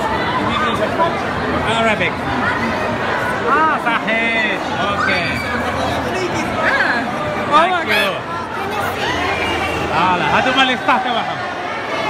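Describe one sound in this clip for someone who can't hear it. Young women squeal and shout excitedly close by.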